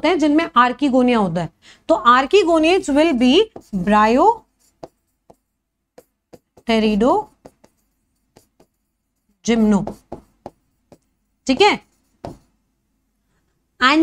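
A young woman speaks clearly and with animation into a close microphone, in short bursts with pauses.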